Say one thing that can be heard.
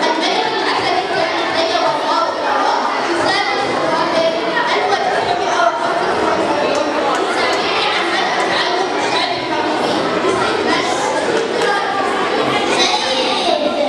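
A young boy speaks into a microphone, heard through loudspeakers in a reverberant hall.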